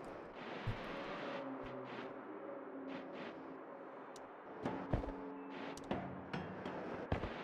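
Soft game music plays.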